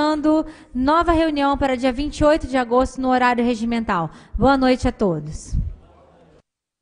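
A woman speaks firmly into a microphone in an echoing hall.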